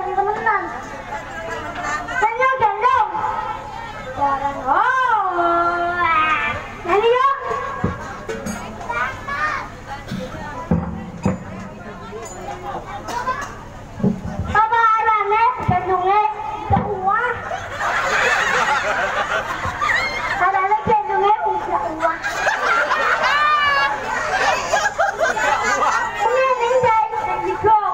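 A young child speaks with animation through a loudspeaker.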